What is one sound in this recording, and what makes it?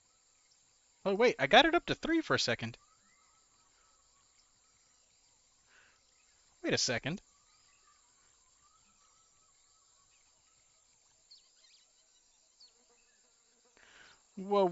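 A man speaks casually and close to a microphone, in short bursts.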